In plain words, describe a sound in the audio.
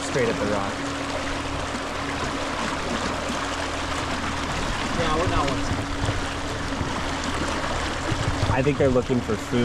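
An outboard motor hums steadily.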